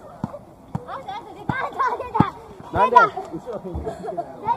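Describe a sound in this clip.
A child shouts loudly nearby.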